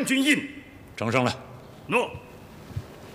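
A middle-aged man speaks briefly and calmly.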